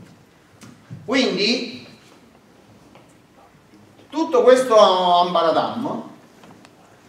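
A middle-aged man speaks in short bursts.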